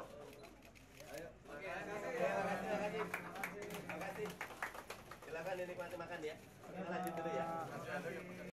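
A crowd murmurs and talks in a large room.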